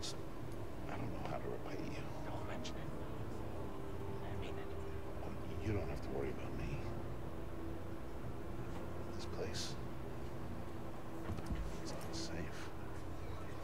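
A young man speaks quietly and tensely, close by.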